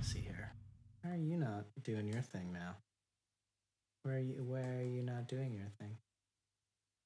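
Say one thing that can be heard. A young man talks calmly and close up into a microphone.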